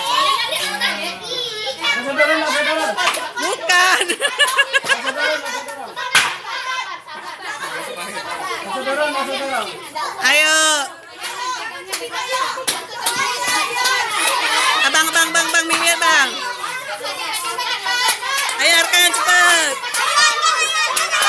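Many children chatter and shout excitedly close by.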